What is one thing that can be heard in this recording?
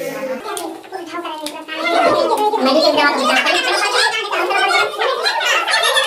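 Children chatter and shout excitedly.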